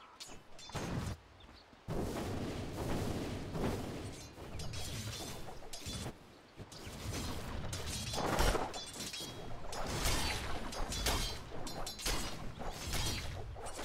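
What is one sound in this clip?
Weapons clash and strike in a video game battle.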